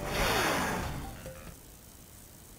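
A swirling portal whooshes loudly and fades.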